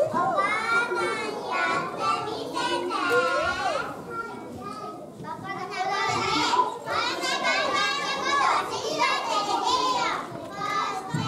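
Young children speak and sing lines together in a hall with a slight echo.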